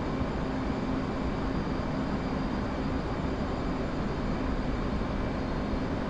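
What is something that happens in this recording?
A jet engine roars steadily from inside a cockpit.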